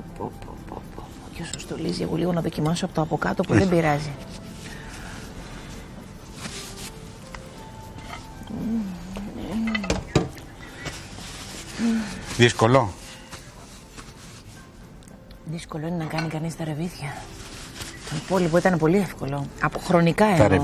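A fork scrapes on a plate.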